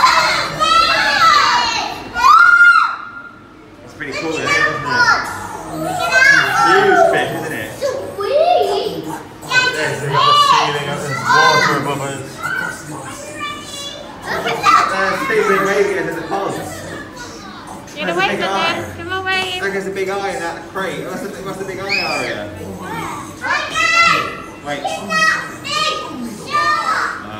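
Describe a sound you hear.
A young child talks and exclaims excitedly close by.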